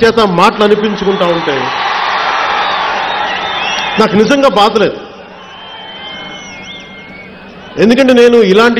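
A man speaks forcefully through a loudspeaker, echoing outdoors.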